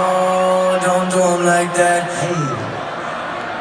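A band plays a loud, sustained chord through loudspeakers in a large hall, then stops.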